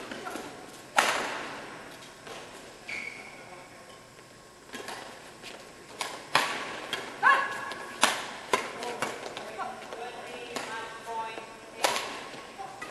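A badminton racket strikes a shuttlecock in a large echoing hall.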